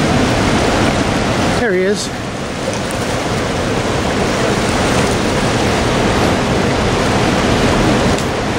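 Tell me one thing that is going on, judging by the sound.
Choppy water laps and splashes against rocks in a steady rush.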